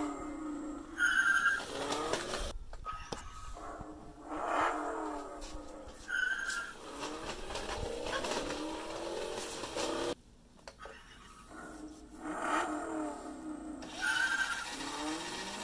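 A toy car's speaker gives short high beeps.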